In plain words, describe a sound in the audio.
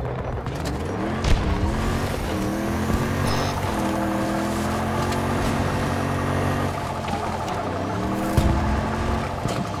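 A vehicle engine hums and revs steadily as it drives over rough ground.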